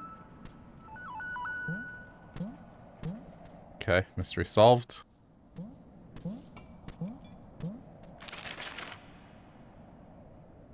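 Electronic game sound effects blip and chime.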